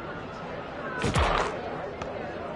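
A basketball swishes through a net.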